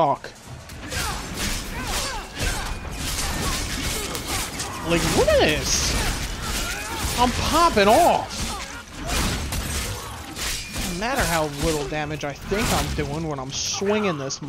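Magic blasts burst with a whoosh.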